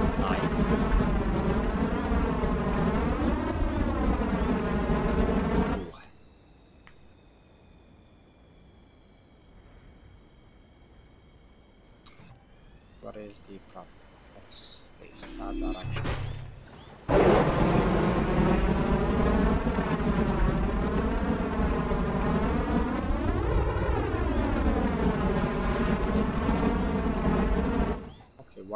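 A jet engine roars loudly, its pitch rising and falling.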